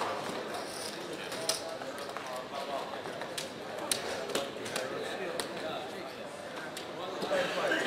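Casino chips clack together as they are stacked and moved.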